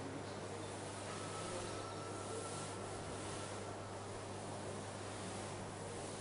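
A duster rubs across a board.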